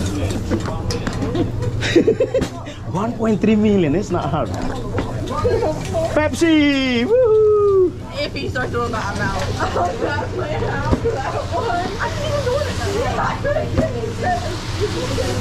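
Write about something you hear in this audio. Men and women chat and laugh nearby.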